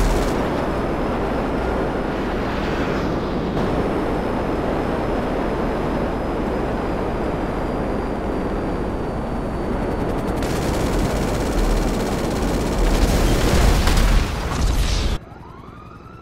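A jet engine roars loudly and steadily.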